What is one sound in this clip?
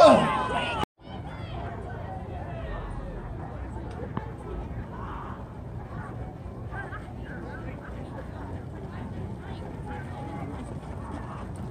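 A crowd murmurs and calls out in the distance.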